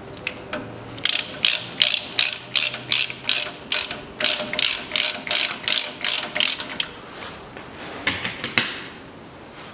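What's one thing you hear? A ratchet wrench clicks rapidly as a bolt is turned.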